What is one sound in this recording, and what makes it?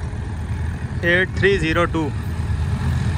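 A diesel locomotive sounds its horn.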